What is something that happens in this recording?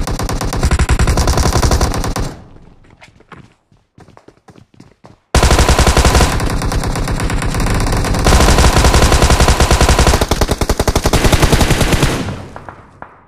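Rifle fire rattles in rapid bursts.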